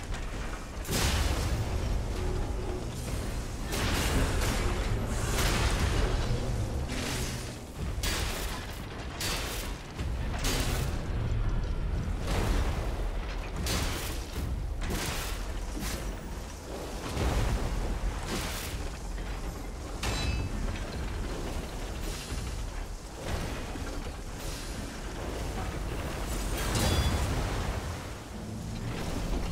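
Heavy metal weights slam and clang against the ground.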